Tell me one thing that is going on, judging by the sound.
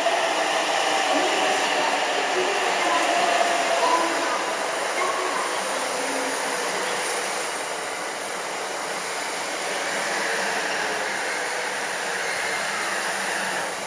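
A train's wheels clatter over the rails as the carriages pass close by.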